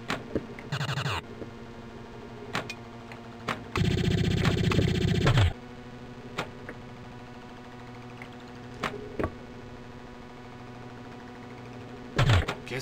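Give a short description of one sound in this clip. A pinball machine plays loud electronic sound effects in short bursts.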